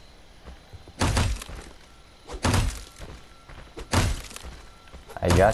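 An axe smashes repeatedly into a wooden door, splintering it.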